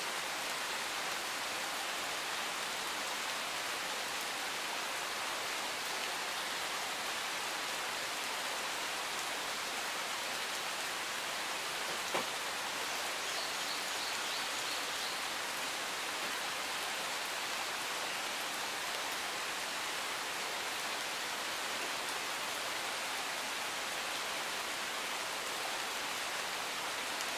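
A stream rushes steadily nearby, outdoors.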